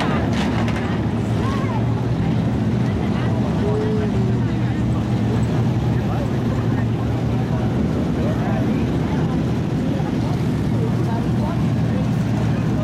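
Race car engines roar steadily nearby.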